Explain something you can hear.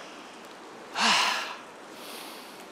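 A man laughs heartily close by.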